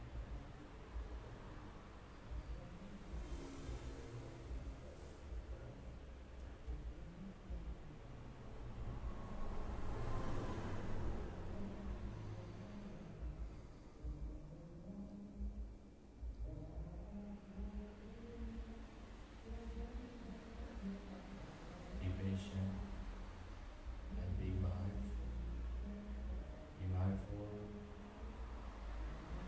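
A young man chants melodically into a microphone, heard through a loudspeaker in an echoing room.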